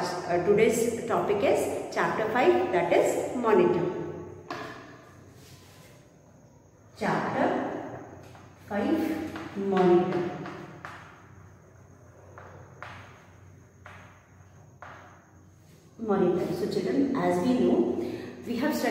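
A woman speaks calmly and clearly close by, pausing now and then.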